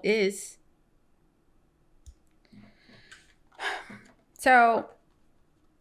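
A young woman speaks softly and calmly, close to a microphone.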